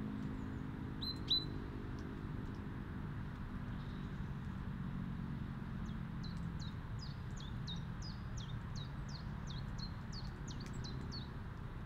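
A small bird chirps and trills nearby.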